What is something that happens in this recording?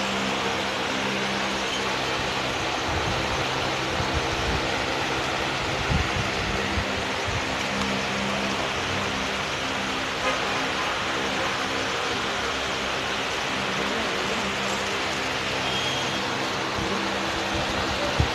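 Plastic clothes hangers clack softly against a metal rail.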